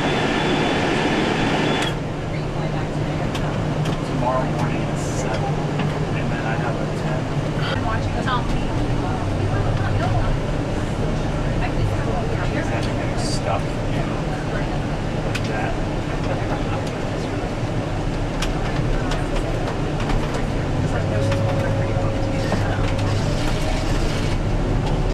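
Tyres rumble steadily on a road as a vehicle drives along.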